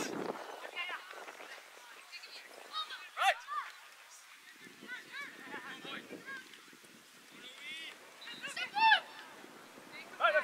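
Young female players shout and call to each other across an open field.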